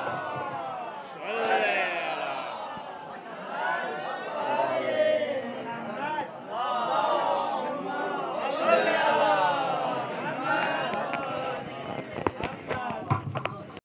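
A man chants loudly into a microphone, heard through a loudspeaker.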